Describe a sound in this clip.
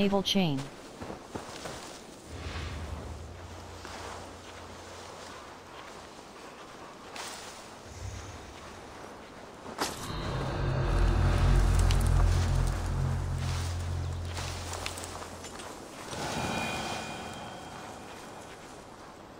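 Leafy bushes rustle as someone creeps through them.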